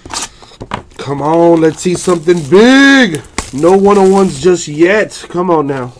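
A plastic wrapper crinkles as a card pack is handled.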